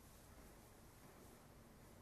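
Footsteps pad softly across a stone floor in a large echoing hall.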